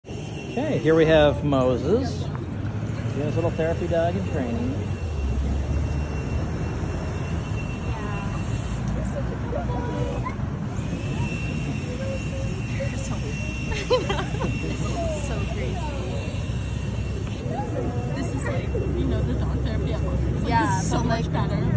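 Young women talk and laugh nearby with animation.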